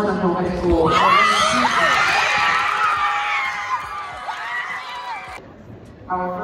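A crowd cheers and shrieks in a large echoing hall.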